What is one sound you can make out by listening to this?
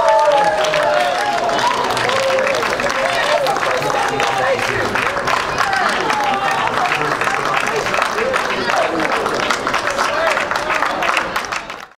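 A crowd of men cheers and whoops.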